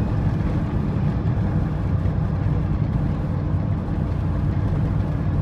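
A vehicle engine rumbles loudly and steadily from inside the cab.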